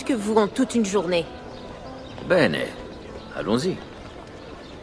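A woman speaks calmly, close by.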